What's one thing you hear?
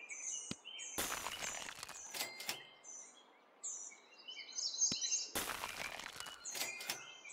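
Bursts of hissing game sound effects whoosh.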